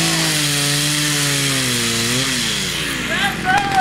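A chainsaw engine runs and then winds down to a stop.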